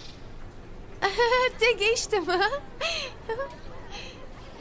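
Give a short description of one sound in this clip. A young girl talks brightly and cheerfully.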